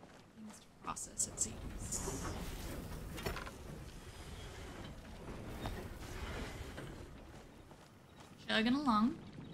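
A woman talks calmly and close to a microphone.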